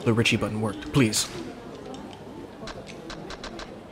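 Game tiles clack softly.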